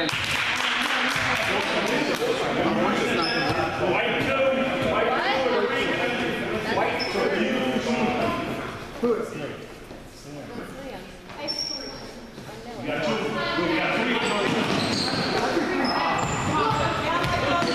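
Children shout and call out in a large echoing gym.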